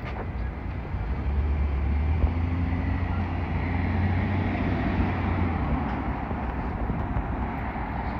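A car engine hums as the car drives slowly past on the street.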